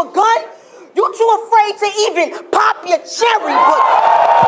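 A young woman shouts rhymes with force at close range.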